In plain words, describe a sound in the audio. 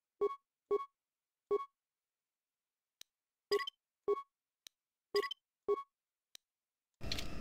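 Short electronic menu beeps sound one after another.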